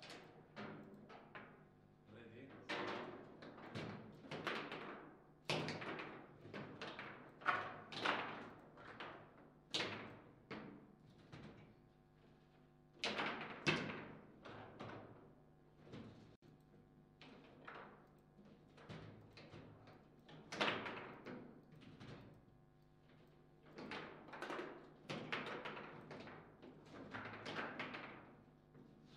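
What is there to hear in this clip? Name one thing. A small ball clacks against plastic figures and table walls as rods rattle.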